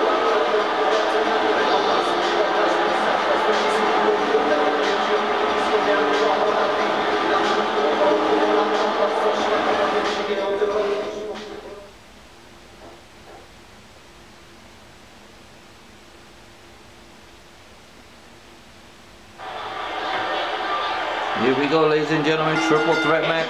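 Loud entrance music plays in a game.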